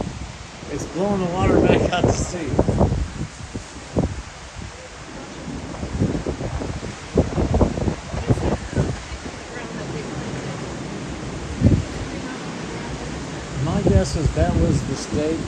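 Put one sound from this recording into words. Waves break and wash up onto a sandy shore.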